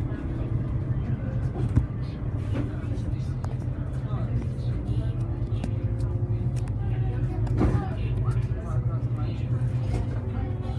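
Loose bus fittings rattle and clatter.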